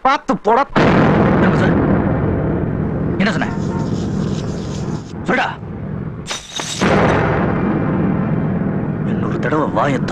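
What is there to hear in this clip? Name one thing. A man speaks angrily from inside a car.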